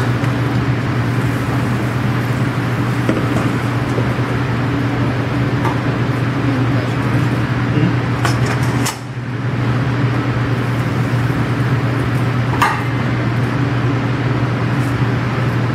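A metal pan clinks against a metal bowl.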